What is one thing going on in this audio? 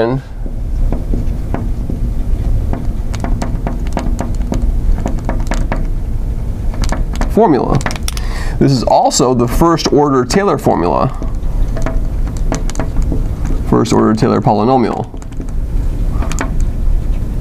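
A marker squeaks and taps on glass as it writes.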